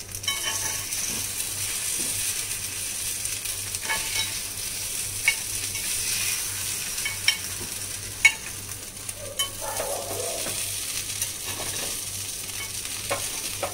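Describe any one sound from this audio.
Batter sizzles and crackles steadily in hot oil.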